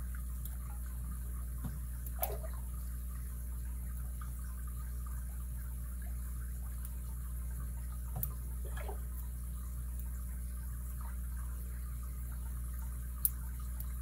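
Small metal picks scrape and click softly inside a lock.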